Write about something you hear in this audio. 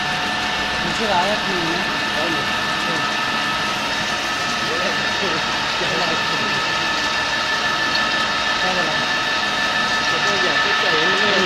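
A milling machine cutter whines steadily as it grinds through metal.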